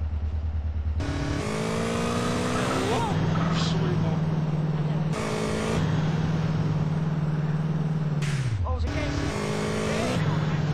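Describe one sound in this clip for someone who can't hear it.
A motorcycle engine roars and revs up and down as the motorcycle speeds along.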